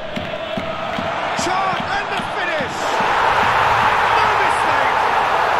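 A large crowd cheers loudly, swelling into a roar.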